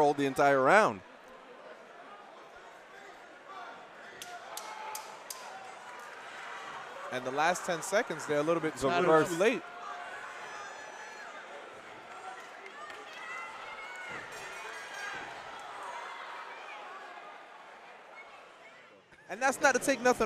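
A crowd cheers and murmurs in a large echoing hall.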